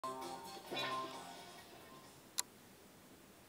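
Video game music plays from a television and fades out.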